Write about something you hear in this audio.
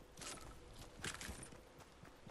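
Footsteps crunch quickly over dirt and grass.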